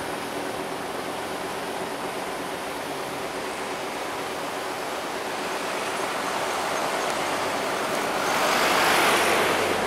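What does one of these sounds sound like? A propeller aircraft's engines drone steadily as it climbs away overhead.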